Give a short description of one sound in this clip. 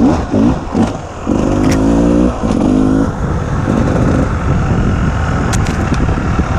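A dirt bike engine revs up and down, close by.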